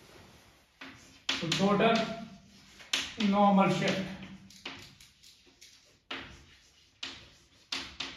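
Chalk taps and scratches on a chalkboard.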